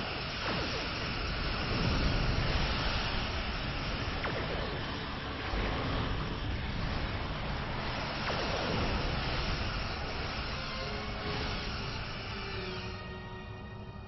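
Explosions boom and rumble in rapid bursts.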